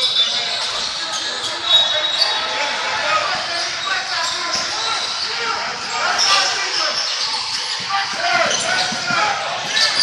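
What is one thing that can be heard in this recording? Spectators chatter and call out nearby in an echoing gym.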